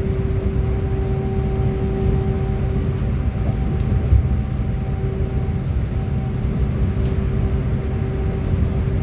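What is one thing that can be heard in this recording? Traffic roars and echoes through a tunnel.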